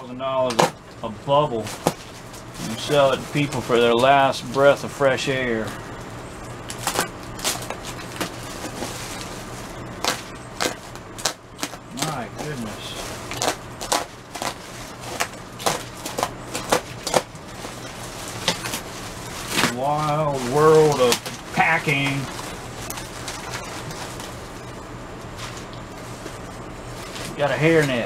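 A plastic bag crinkles and rustles as hands handle it.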